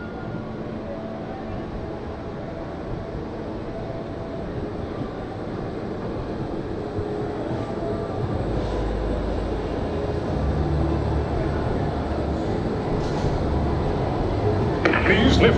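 A ride car rumbles and clatters along its track, growing louder.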